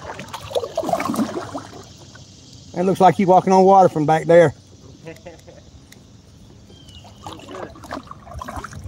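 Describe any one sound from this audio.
Water laps gently against a small boat's hull.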